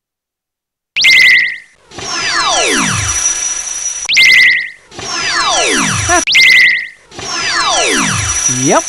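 Electronic laser zaps sound in bursts, each falling in pitch.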